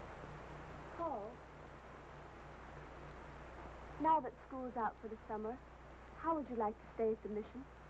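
A woman speaks softly and warmly, close by.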